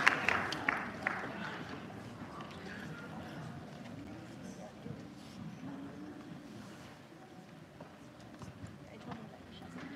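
A crowd of people murmurs quietly in a large hall.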